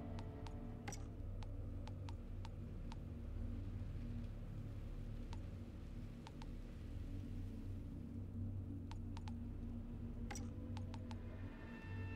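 Soft interface clicks tick now and then as menus open and close.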